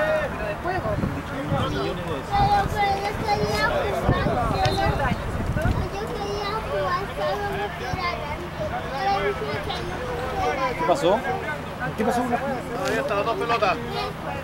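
Men talk and call out outdoors.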